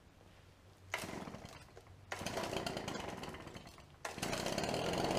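A man pulls a starter cord on a leaf blower with rasping tugs.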